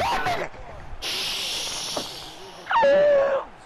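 A stadium crowd cheers and roars.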